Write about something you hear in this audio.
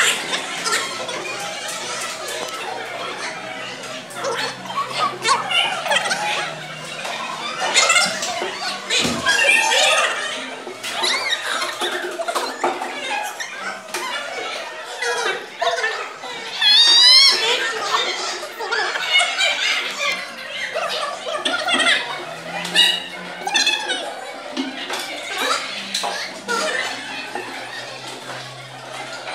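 A woman speaks to the children.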